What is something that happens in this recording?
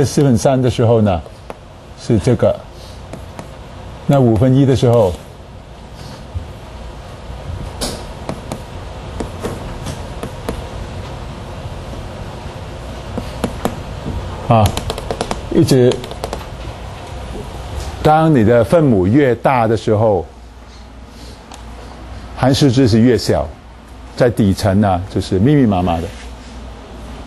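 A man speaks in short bursts into a close microphone, calmly explaining.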